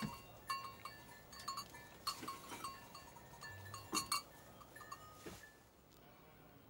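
A metal pot clanks and scrapes.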